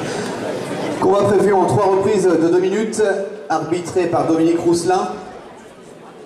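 A man announces loudly through a loudspeaker in a large echoing hall.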